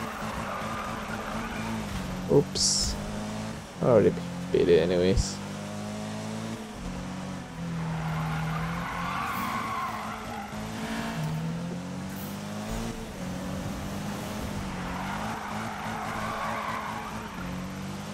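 A car engine revs loudly and steadily.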